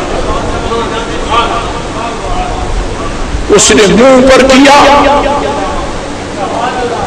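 An elderly man speaks with animation into a microphone, heard through a loudspeaker.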